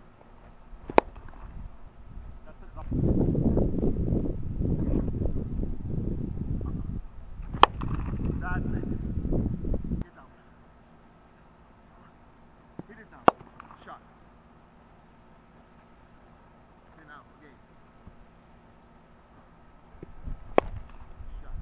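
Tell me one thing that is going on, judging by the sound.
A cricket bat sharply cracks against a ball.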